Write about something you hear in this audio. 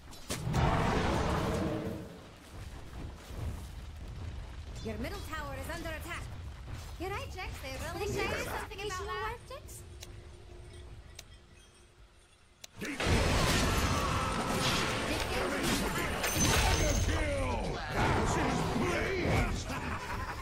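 Magic blasts and fiery bursts crackle and boom during a fight.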